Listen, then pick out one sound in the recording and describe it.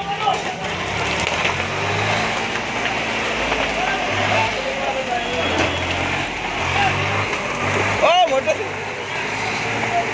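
A tractor engine rumbles nearby.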